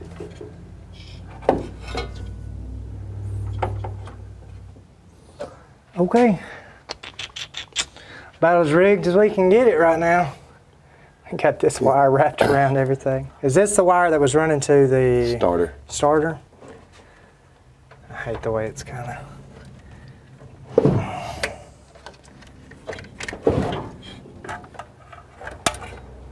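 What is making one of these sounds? Hands rattle and click wires and metal parts.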